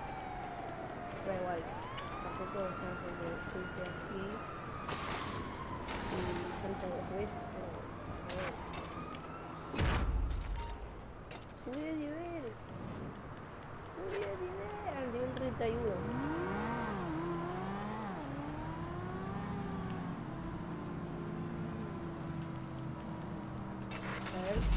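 Bicycle tyres roll over concrete.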